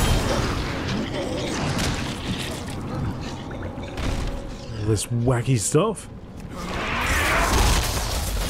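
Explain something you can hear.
A character's sword strikes clash against a creature.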